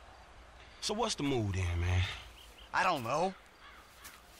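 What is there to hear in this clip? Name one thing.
A second man asks a question with animation.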